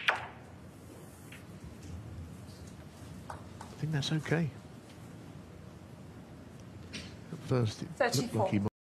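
A cue tip strikes a snooker ball with a sharp click.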